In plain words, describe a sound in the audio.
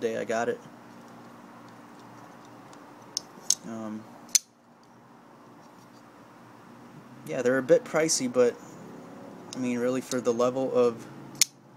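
A folding knife clicks softly as it is handled.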